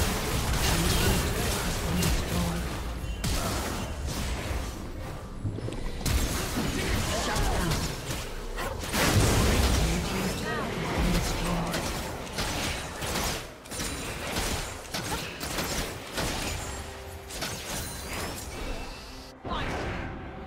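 Spells, blasts and clashing weapons ring out in a busy game battle.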